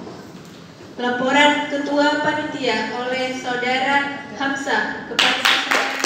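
A woman speaks through a microphone in an echoing hall.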